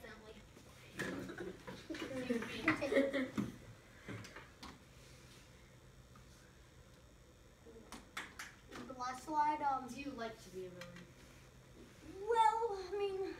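Children talk and laugh nearby.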